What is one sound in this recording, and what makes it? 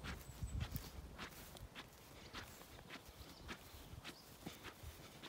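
Dogs' paws patter softly over grass.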